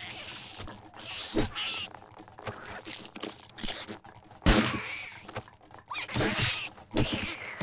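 A zombie growls and snarls close by.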